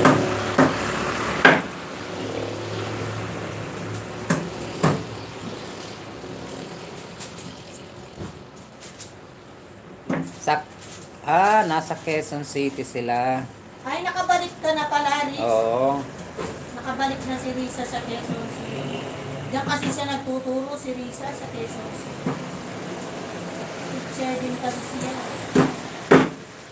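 A knife knocks against a wooden cutting board.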